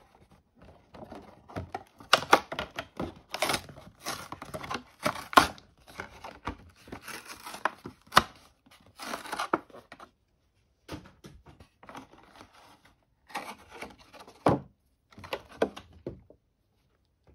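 Stiff plastic packaging crinkles and rustles as hands handle it.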